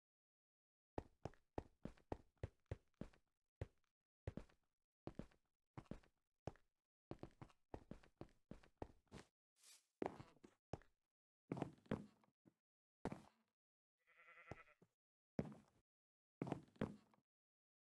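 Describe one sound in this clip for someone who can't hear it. Footsteps tap quickly on stone and wood.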